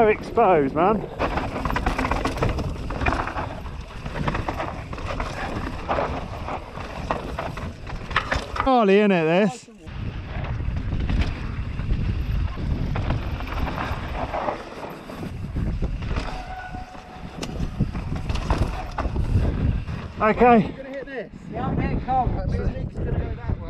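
Bike tyres roll and crunch over rocky dirt.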